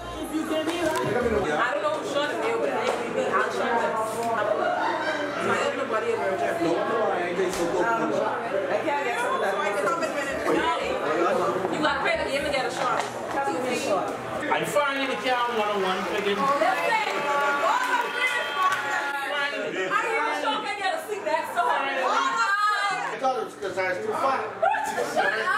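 Several men and women chatter and laugh together in a room.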